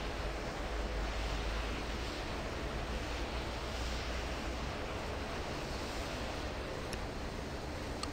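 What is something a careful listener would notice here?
A plane's engines roar steadily.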